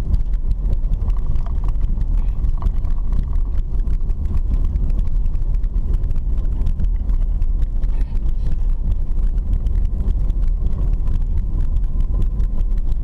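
Tyres rattle and crunch over a bumpy dirt road.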